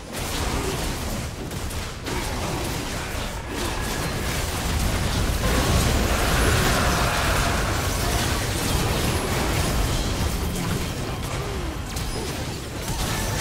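Video game spell blasts and hits crackle and boom in a busy fight.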